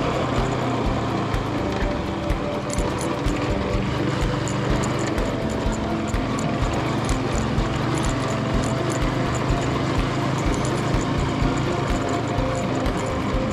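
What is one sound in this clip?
Tyres rumble and bump over a rough dirt track.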